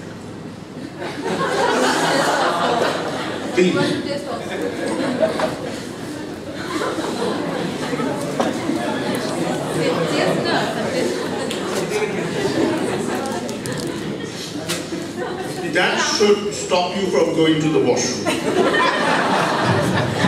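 A man speaks through a microphone, echoing in a large hall.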